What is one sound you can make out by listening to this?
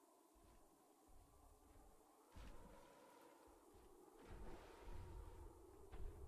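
A large creature's footsteps thud softly on a dirt path.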